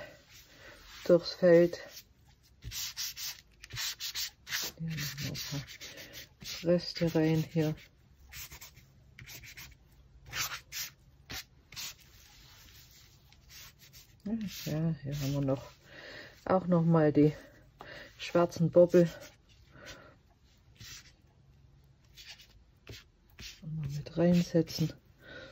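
A gloved hand smears paint across paper with soft rubbing.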